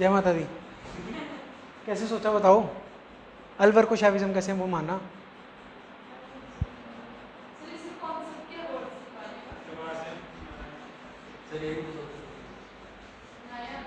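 A young man speaks calmly, like a teacher explaining, close by in a room.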